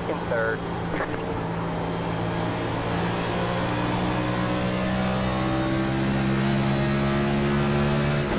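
A race car engine roars steadily and slowly rises in pitch as the car speeds up.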